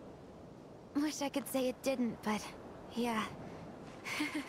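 A young woman speaks softly and wearily.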